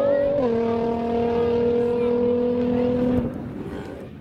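A race car accelerates at full throttle down a drag strip.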